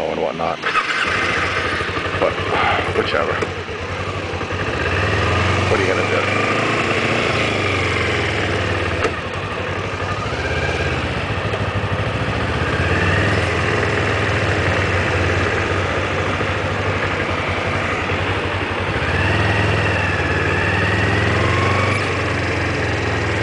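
A motorcycle engine hums and revs up and down close by.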